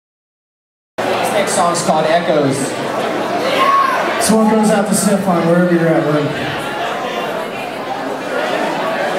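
A rock band plays loudly in a large echoing hall.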